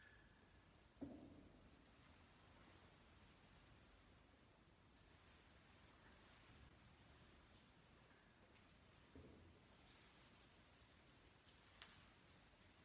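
Objects knock softly on a table, echoing in a large stone hall.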